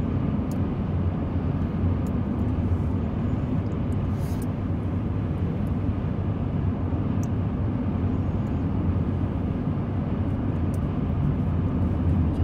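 A car cruises at highway speed, with a low road rumble heard from inside the car.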